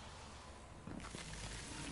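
A fire burns with a low roar.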